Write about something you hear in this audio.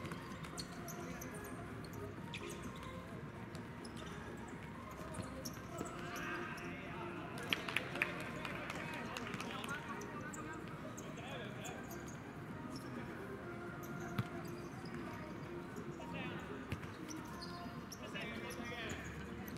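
Players' shoes scuff and patter on a hard court.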